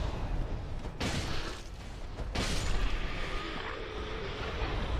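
Metal weapons clash and clang.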